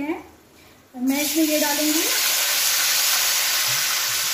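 Food drops into a pan of hot oil with a loud hiss.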